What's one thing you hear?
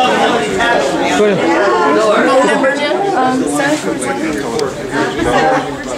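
A woman talks warmly and cheerfully close by.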